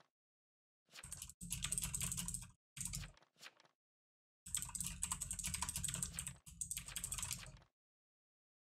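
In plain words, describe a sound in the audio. Keys on a keyboard clatter in quick bursts of typing.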